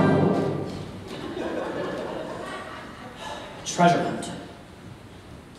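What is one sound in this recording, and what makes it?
A man speaks loudly from a stage in a large, echoing hall.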